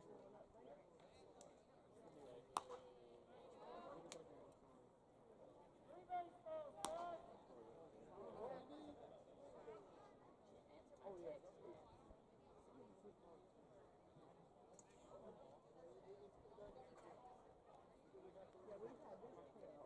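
A crowd murmurs and chatters in the open air.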